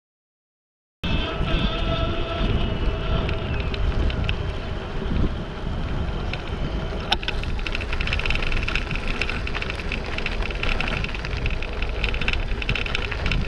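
Wind rumbles loudly against a microphone while riding outdoors.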